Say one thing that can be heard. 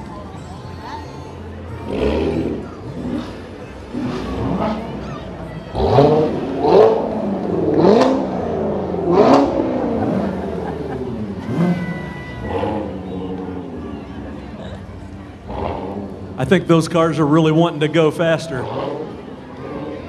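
A crowd chatters along the street.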